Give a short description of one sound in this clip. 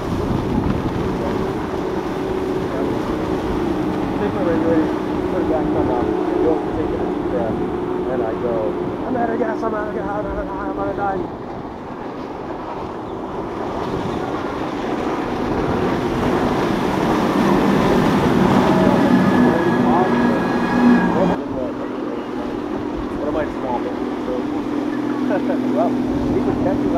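A motorboat engine drones steadily as the boat speeds across the water.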